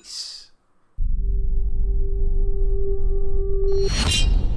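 Music plays with a low steady drone.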